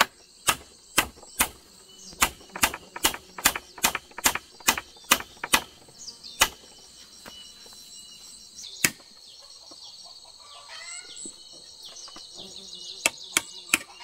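A hammer knocks sharply on hollow bamboo in quick blows.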